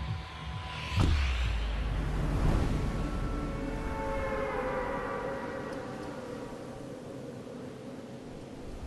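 Wind rushes loudly past a falling skydiver and slowly eases.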